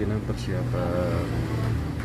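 A motorbike passes by.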